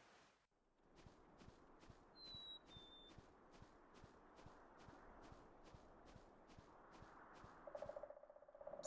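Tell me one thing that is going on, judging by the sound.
Light, quick footsteps patter steadily.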